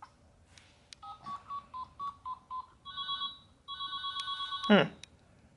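A toy phone plays a string of electronic beeps and tunes.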